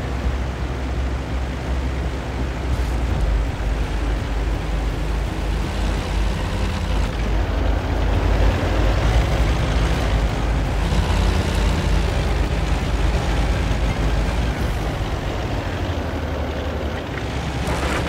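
Tank tracks clatter over rough ground.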